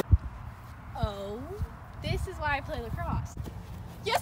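A young girl speaks calmly close by.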